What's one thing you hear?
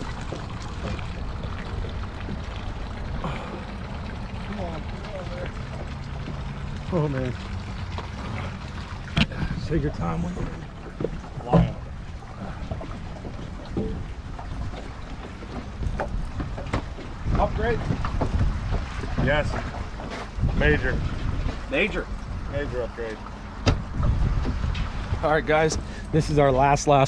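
Wind blows outdoors over open water.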